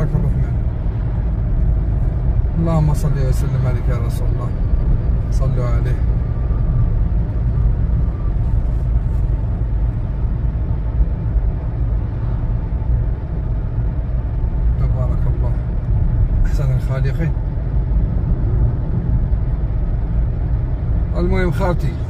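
A car's tyres hum steadily on the road as it drives.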